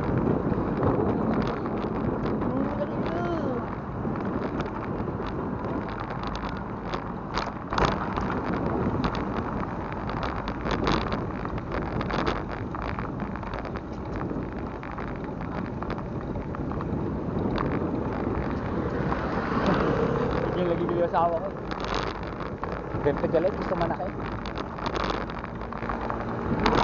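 Wind rushes loudly past, outdoors while riding along.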